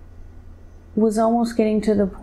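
A woman speaks softly and drowsily, close to a microphone.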